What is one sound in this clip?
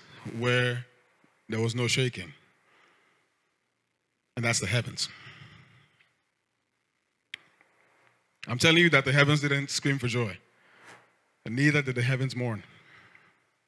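A man speaks with animation into a microphone over loudspeakers, in short bursts with pauses, in a large reverberant hall.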